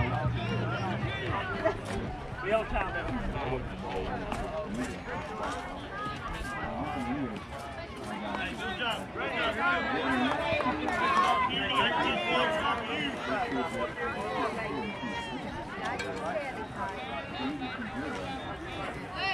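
A crowd of spectators chatters outdoors nearby.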